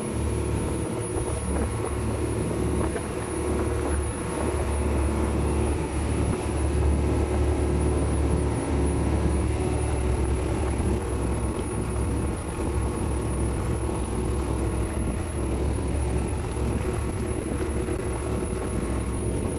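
A boat engine rumbles steadily up close.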